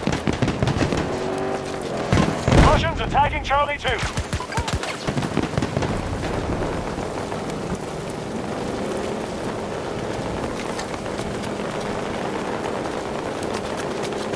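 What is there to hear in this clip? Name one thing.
Rain and wind rush steadily outdoors.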